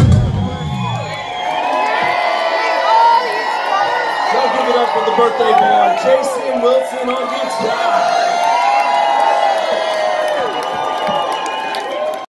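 A large crowd cheers and whistles in an echoing hall.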